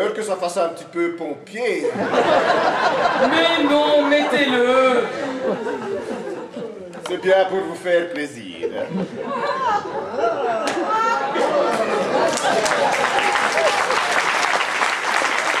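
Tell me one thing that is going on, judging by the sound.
A man speaks loudly and theatrically.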